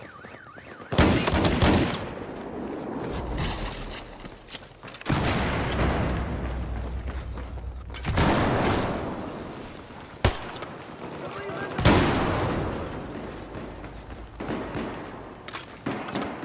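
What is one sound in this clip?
Gunshots bang loudly in short bursts.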